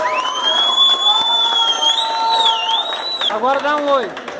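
A crowd of young people screams shrilly and excitedly.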